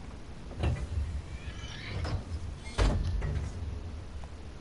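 A heavy metal valve wheel creaks and clunks as it turns.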